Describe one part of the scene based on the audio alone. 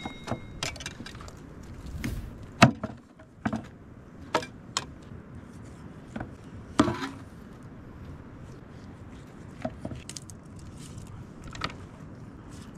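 A cleaver chops meat on a wooden board with sharp knocks.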